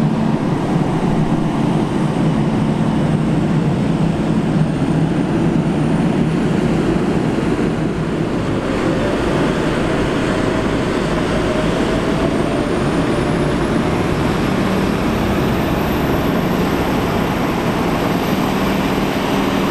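Heavy tyres crunch over packed grass.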